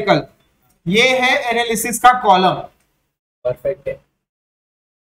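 A man lectures clearly and calmly, close by.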